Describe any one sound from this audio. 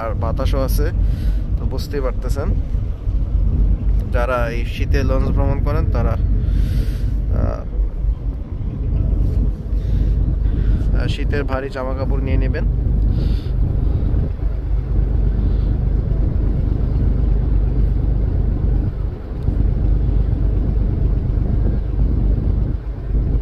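A ship's engine rumbles low and steadily.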